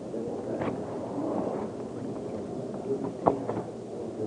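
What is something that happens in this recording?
People shuffle into wooden pews with soft knocks.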